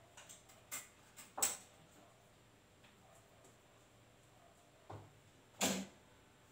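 A sewing machine runs in short bursts.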